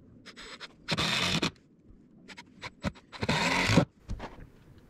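A cordless drill whirs in short bursts as it drives screws into wood.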